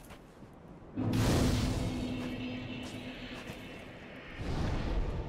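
A fire bursts alight with a deep whoosh and fades.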